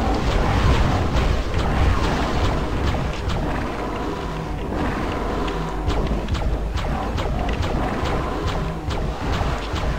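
A magic weapon fires with sharp bursts in a video game.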